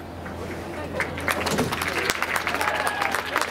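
A group of young men clap their hands.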